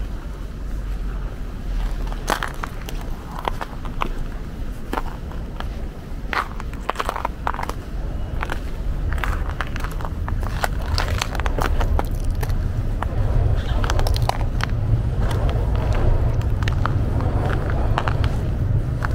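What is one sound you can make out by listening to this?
Footsteps crunch in snow at a steady walking pace.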